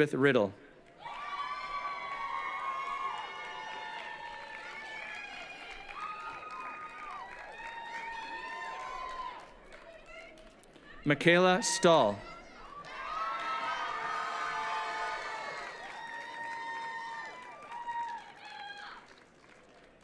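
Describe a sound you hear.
A crowd cheers and whoops outdoors.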